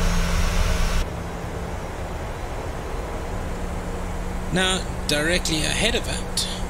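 Jet engines hum more quietly, heard from inside the cockpit.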